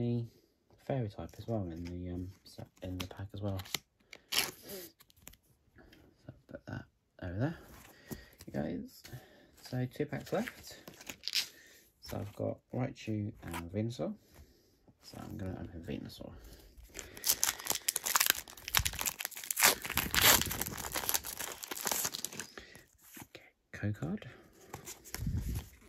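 Playing cards rustle and slide against each other.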